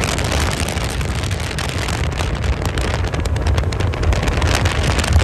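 Water sprays and hisses behind a speeding boat.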